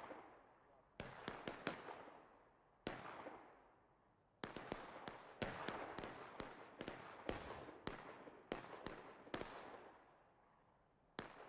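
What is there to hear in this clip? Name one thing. Musket shots crack and echo.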